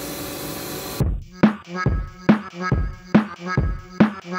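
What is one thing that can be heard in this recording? A tape feeder thumps forward in a quick, even rhythm.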